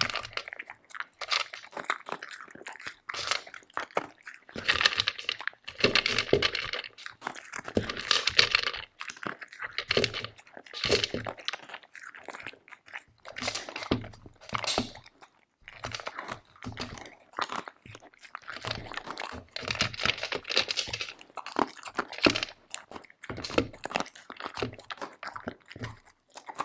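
A dog's nose knocks and pushes a plastic bowl.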